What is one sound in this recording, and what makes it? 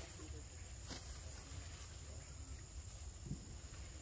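Monkeys pad softly across stone.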